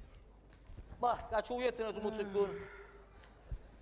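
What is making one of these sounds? A man exclaims loudly.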